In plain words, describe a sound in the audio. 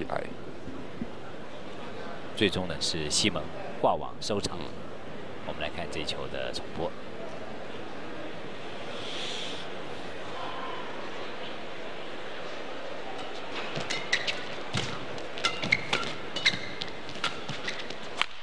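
Shuttlecock hits from badminton rackets pop sharply in a large echoing hall.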